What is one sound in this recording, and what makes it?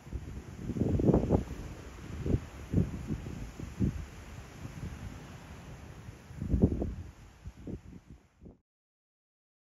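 Wind gusts and rumbles across an open hillside.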